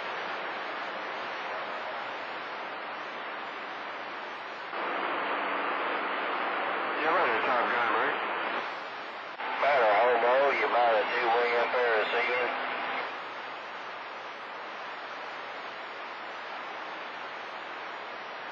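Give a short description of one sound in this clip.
Static hisses steadily from a radio loudspeaker.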